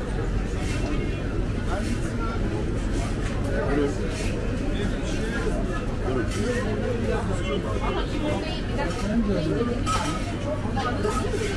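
Many people chatter in the background.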